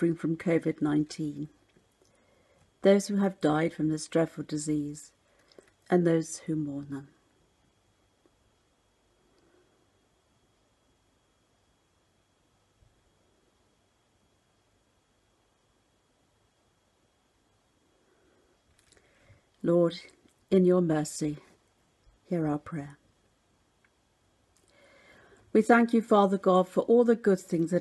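An elderly woman speaks calmly and slowly into a nearby microphone, pausing at length between phrases.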